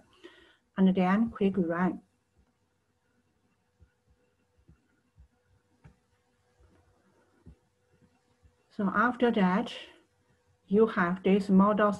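A woman speaks calmly into a close microphone, pausing between phrases.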